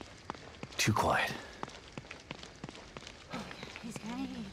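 Quick footsteps run over a gravel road.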